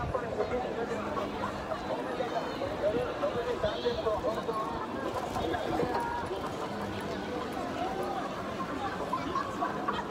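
Many people chatter in a busy crowd outdoors.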